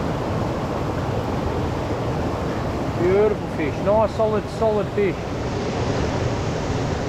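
Water rushes steadily over a small waterfall close by.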